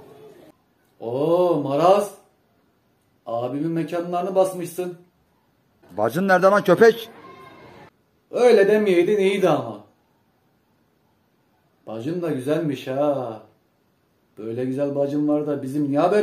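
A man speaks calmly into a phone, close by.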